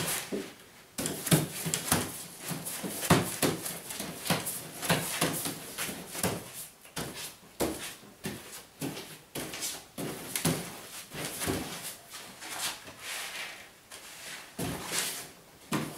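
A pasting brush swishes wet paste across wallpaper.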